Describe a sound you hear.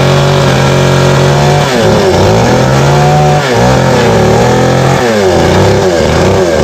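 A chainsaw engine roars loudly, its pitch dipping and rising as it cuts into wood.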